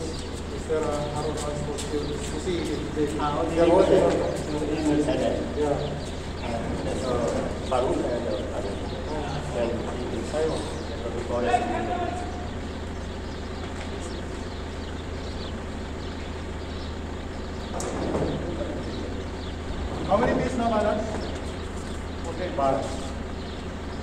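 Men talk with each other outdoors nearby.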